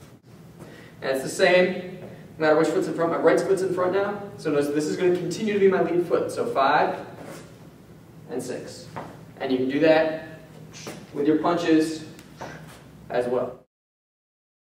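A man speaks calmly and clearly into a microphone.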